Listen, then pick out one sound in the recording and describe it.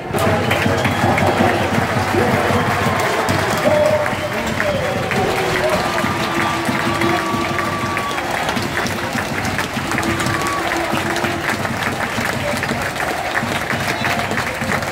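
Fans clap and whistle across the stands.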